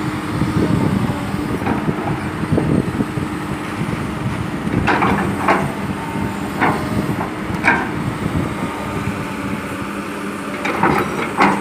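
A heavy excavator engine rumbles steadily.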